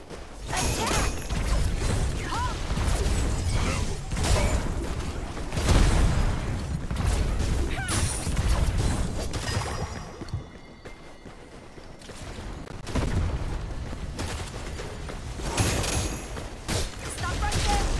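Magic blasts and weapon strikes crash and whoosh in rapid bursts.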